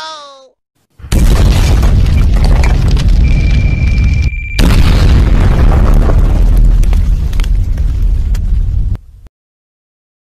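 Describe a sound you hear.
An explosion booms and roars loudly.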